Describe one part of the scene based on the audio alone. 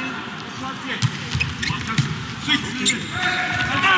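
A volleyball is struck hard several times, with sharp smacks.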